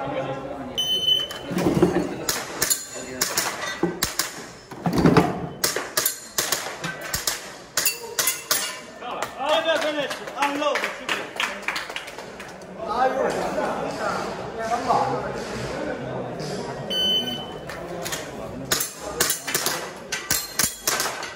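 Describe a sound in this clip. Gunshots crack in rapid bursts in a large echoing hall.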